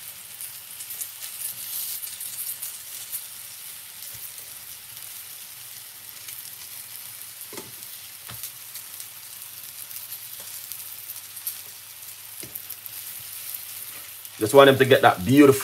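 Metal tongs tap and scrape against a pan.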